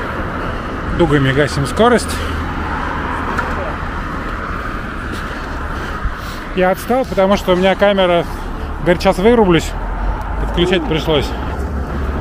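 A young man calls out loudly nearby.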